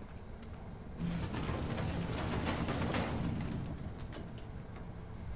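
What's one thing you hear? A heavy metal lid creaks and clanks open.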